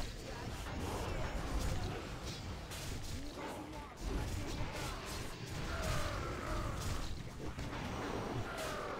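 Fantasy combat sounds of spells whooshing and crackling go on throughout.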